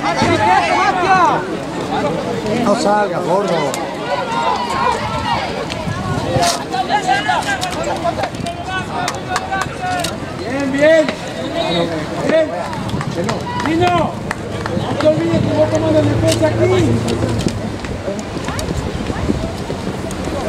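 A crowd of spectators shouts and cheers close by, outdoors.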